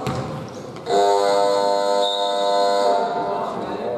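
A referee blows a long whistle.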